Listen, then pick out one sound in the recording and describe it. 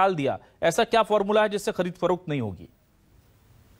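A man speaks with animation through a studio microphone.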